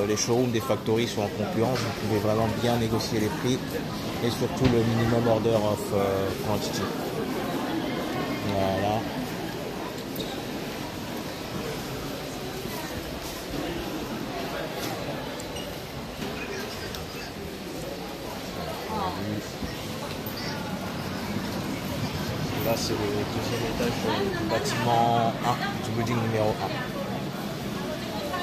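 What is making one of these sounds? A crowd of men and women chatters and murmurs in a busy indoor hall.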